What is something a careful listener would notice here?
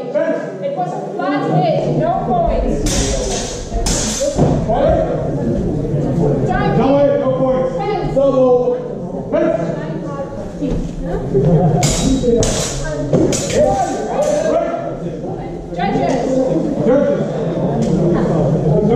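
A woman speaks loudly nearby in a large echoing hall.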